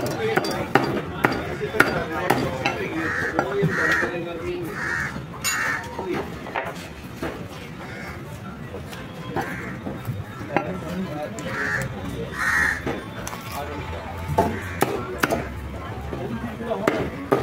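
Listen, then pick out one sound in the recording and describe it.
A cleaver chops through meat on a wooden block with sharp thuds.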